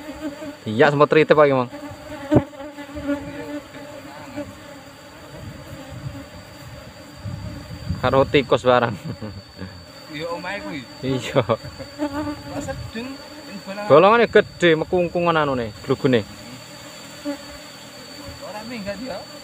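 A swarm of bees hums steadily close by.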